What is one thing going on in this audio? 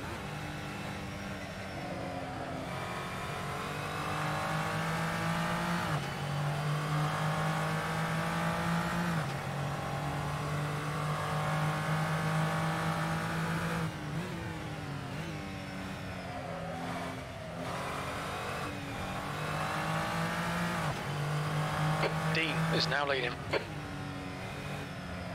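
A race car engine accelerates hard through the gears, rising in pitch and dropping at each gear change.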